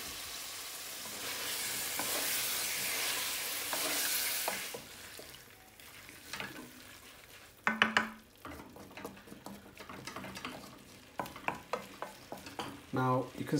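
A wooden spoon scrapes and stirs food in a pan.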